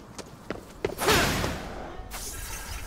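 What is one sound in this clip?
Glass shatters with a loud burst.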